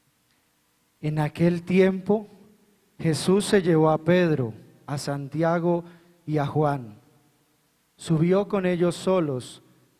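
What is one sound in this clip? A man speaks calmly into a microphone, heard loudly through loudspeakers.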